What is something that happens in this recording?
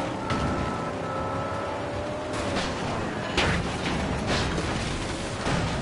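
Cars crash together with a bang of metal on metal.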